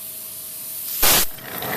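Air hisses briefly from a valve.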